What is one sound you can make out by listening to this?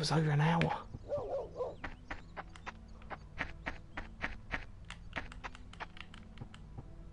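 Footsteps run quickly on a path.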